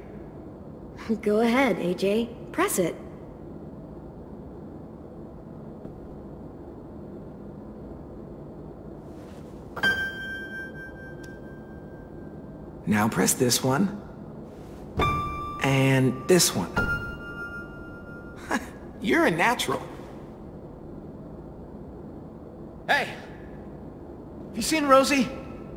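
A young woman speaks gently.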